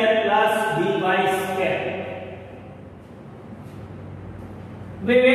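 An elderly man lectures calmly, heard close through a microphone.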